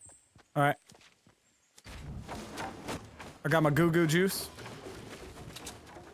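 Wooden walls snap into place with knocks.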